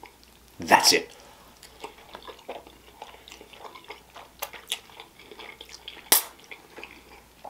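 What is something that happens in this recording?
A man chews wet food with smacking sounds, close to a microphone.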